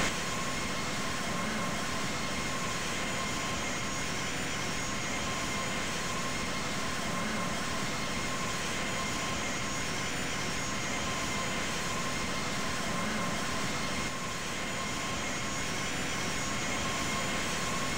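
Jet engines roar steadily as an airliner flies.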